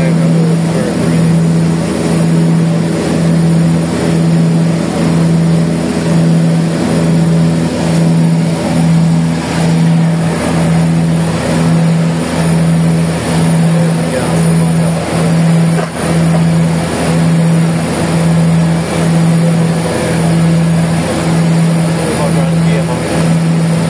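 Propeller engines drone loudly and steadily with a pulsing throb inside an aircraft cabin.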